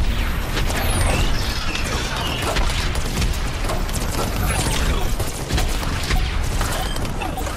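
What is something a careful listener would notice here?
A heavy robot stomps and clanks.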